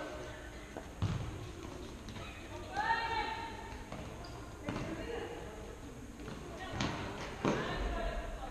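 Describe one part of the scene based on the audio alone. A ball thuds as players kick it in a large echoing hall.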